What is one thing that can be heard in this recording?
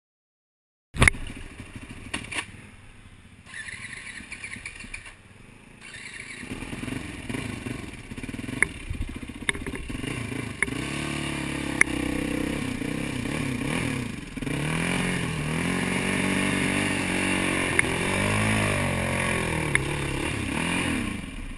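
A dirt bike engine revs and rumbles up close.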